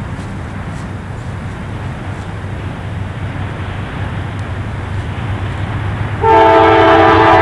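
A diesel freight locomotive rumbles as it approaches from a distance.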